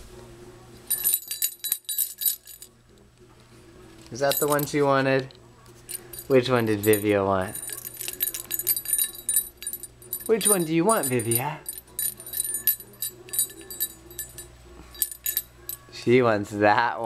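A toy rattle jingles as it is shaken.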